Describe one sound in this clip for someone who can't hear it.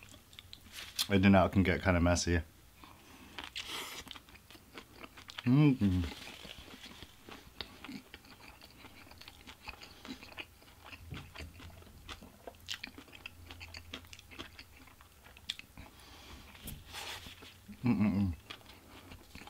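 A young man hums with pleasure, mouth full.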